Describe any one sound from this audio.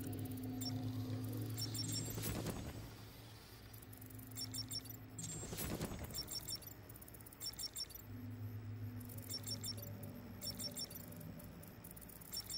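An electronic device beeps in quick high chirps.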